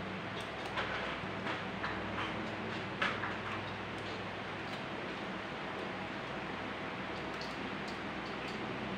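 A plastic wrapper crinkles between fingers.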